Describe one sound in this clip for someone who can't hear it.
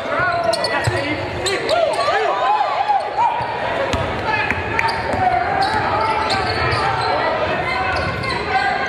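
A basketball thuds as it is dribbled on the court.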